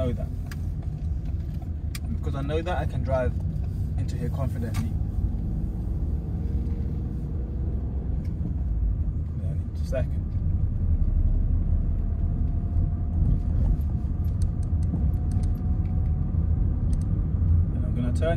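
A car engine hums steadily inside a moving car.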